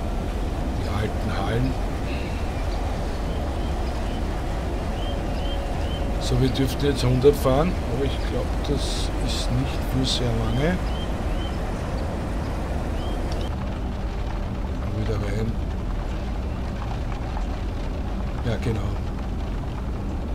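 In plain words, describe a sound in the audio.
An electric train rumbles steadily along the tracks.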